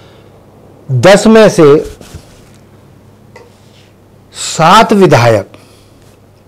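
An elderly man speaks calmly and close to a microphone, in short bursts.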